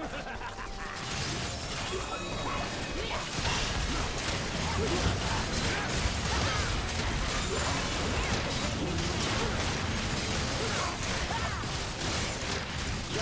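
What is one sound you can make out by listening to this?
Magic blasts burst and boom loudly.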